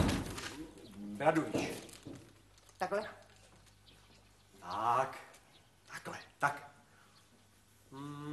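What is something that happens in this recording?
An older woman speaks sharply.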